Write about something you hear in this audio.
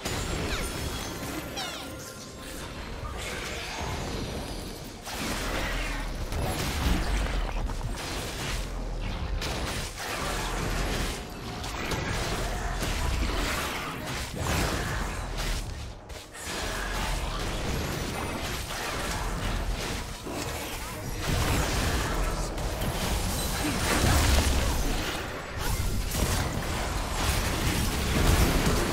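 Video game battle effects clash, zap and whoosh.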